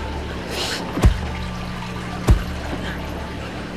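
A hand slaps a man's face.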